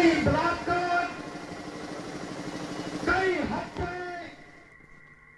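A middle-aged man speaks loudly and with animation into a microphone, heard through a loudspeaker outdoors.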